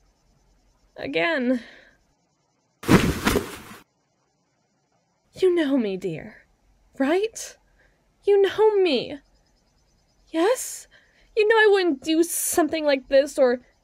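A young woman speaks nervously and with animation, close to a microphone.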